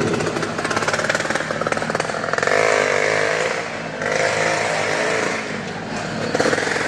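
A motorcycle engine revs loudly, echoing in a large round enclosure.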